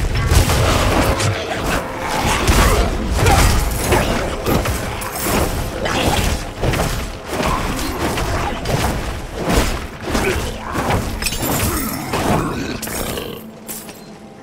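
Fighting sounds from a video game clash and crash rapidly.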